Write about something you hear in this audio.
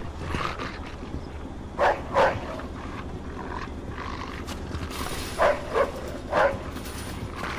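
A heavy metal manhole cover scrapes open.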